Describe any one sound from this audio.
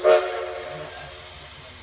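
A steam whistle blows briefly.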